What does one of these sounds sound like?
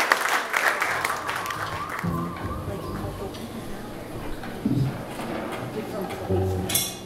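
An acoustic guitar is plucked.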